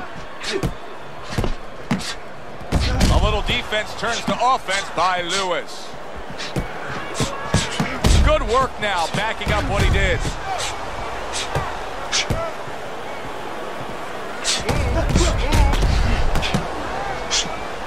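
Gloves thud as punches land.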